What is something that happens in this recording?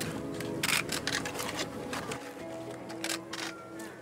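A trowel scrapes wet cement in a bucket.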